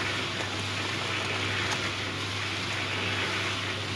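A shovel scoops sand with a gritty scrape.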